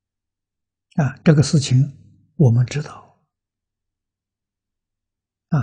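An elderly man speaks calmly and slowly, close to a microphone.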